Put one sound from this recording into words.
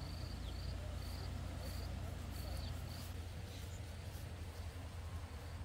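A man walks through grass with soft footsteps.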